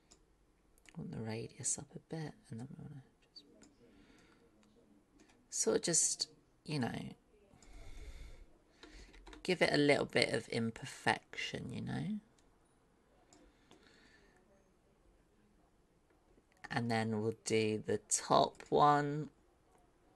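A woman talks calmly into a microphone in bursts, with pauses.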